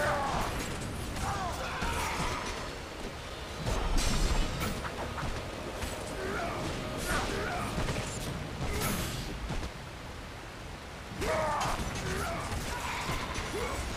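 Blades strike and slash in quick bursts.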